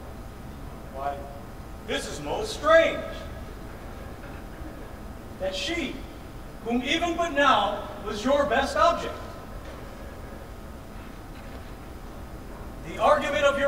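A man speaks with strong expression into a microphone, in a large echoing room.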